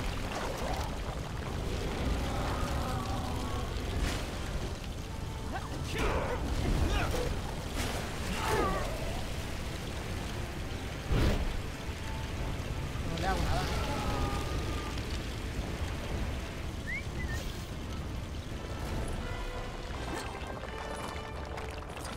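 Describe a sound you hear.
Fiery blasts rumble and crackle in a game.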